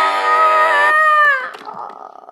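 A toy plays a short electronic tune.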